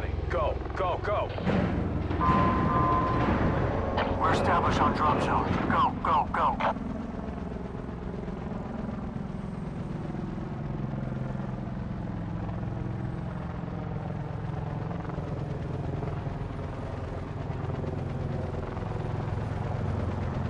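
Several helicopter rotors thump and drone overhead.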